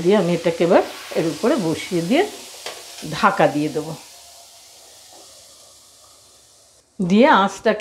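Dough sizzles softly on a hot pan.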